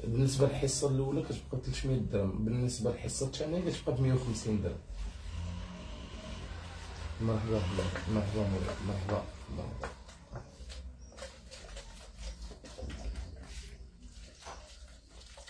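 Hands rub and pat on a towel.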